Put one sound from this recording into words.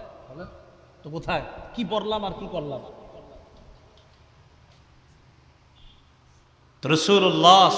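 A man speaks loudly with animation through a microphone and loudspeaker.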